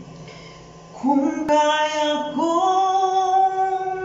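A young man sings long, steady notes close by.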